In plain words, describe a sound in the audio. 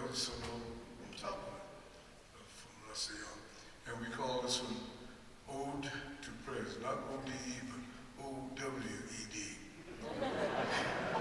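A trumpet plays a lively jazz phrase, the notes short and punchy.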